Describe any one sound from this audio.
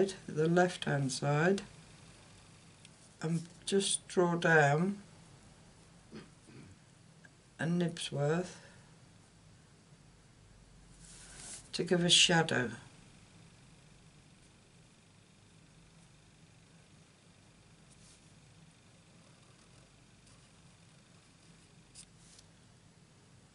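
A felt-tip marker scratches softly on card stock.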